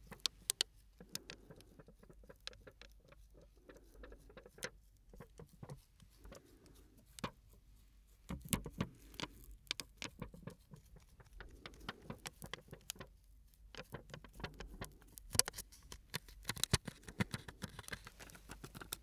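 A man rubs and scratches a foam microphone cover close up.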